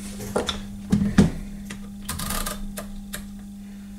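A plastic meter knocks down onto a hard bench.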